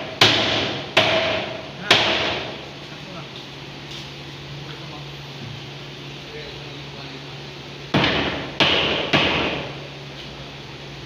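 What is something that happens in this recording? A hammer knocks hard on wood, with a short ringing echo after each blow.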